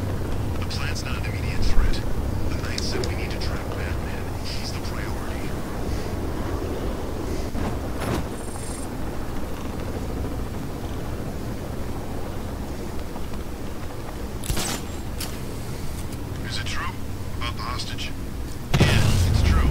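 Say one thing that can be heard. Wind rushes steadily past during a fast glide.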